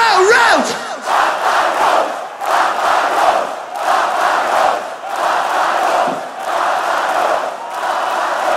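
A large crowd chants and cheers in rhythmic bursts.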